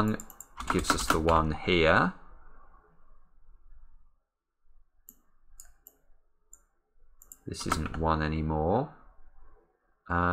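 A man speaks calmly and closely into a microphone, pausing between phrases.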